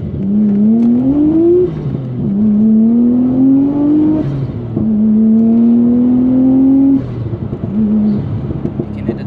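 A car engine revs up through the gears, rising in pitch and dropping at each shift.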